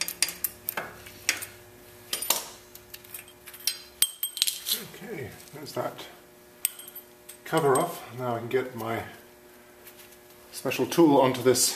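Metal tools clink and tap against a wheel hub.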